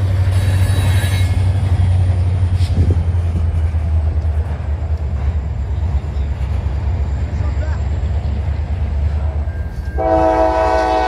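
Freight cars rumble and clatter steadily over a bridge.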